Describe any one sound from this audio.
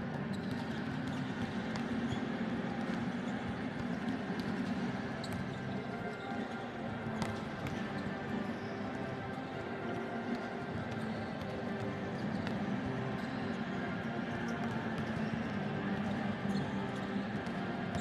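A small crowd murmurs and cheers in a large echoing hall.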